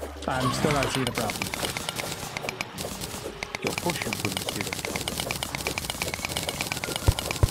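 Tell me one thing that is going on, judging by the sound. Rapid game sound effects of a pickaxe chipping at stone tick away.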